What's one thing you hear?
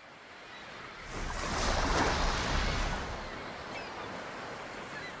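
Water splashes and rushes against moving boats.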